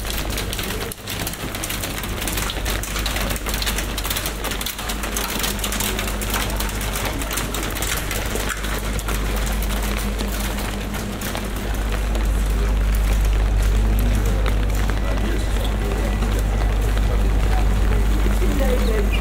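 Rain patters steadily on a wet street outdoors.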